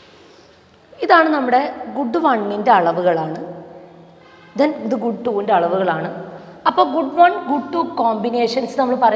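A woman speaks clearly and calmly, as if explaining, close to a microphone.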